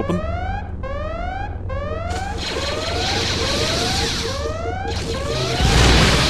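A lightsaber hums steadily.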